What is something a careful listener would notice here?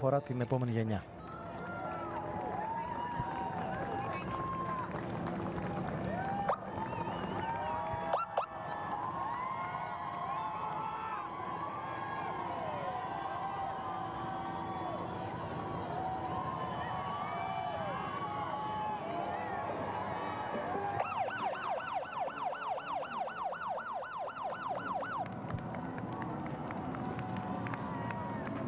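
A large crowd cheers and shouts along a street.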